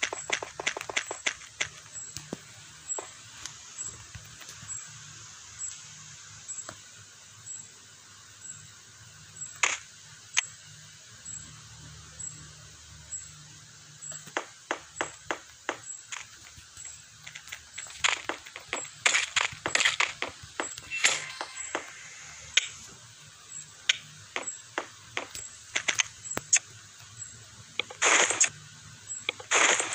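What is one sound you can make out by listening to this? Blocks are placed and struck in a video game with quick clicking thuds.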